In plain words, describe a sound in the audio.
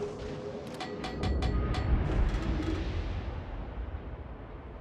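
Heavy naval guns fire with a deep, rolling boom.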